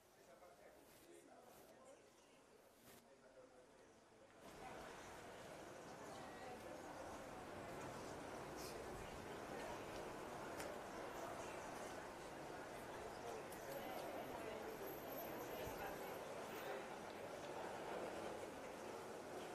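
A crowd of adults murmurs quietly outdoors.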